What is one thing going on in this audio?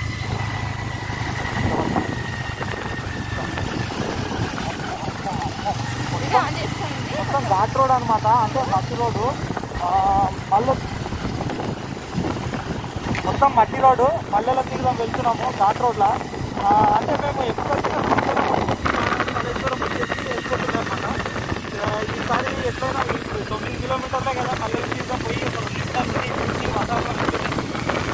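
A motorcycle engine hums while riding.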